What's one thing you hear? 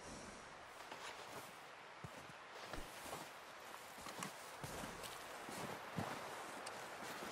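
Boots crunch through deep snow.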